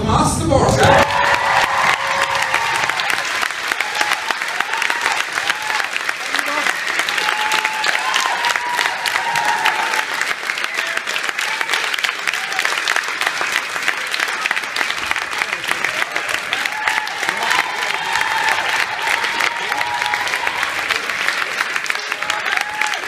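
A large audience applauds steadily and loudly.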